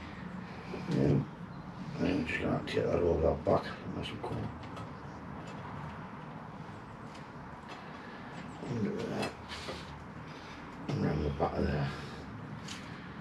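A second man answers calmly nearby.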